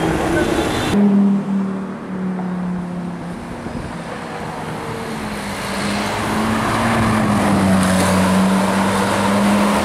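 A sports car engine hums steadily as the car drives past.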